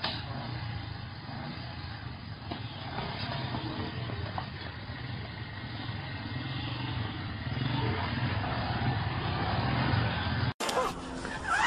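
A motorcycle engine idles and revs.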